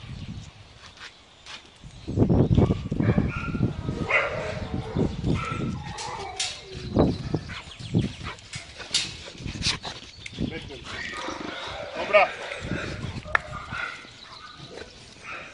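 Dogs scamper across paving stones.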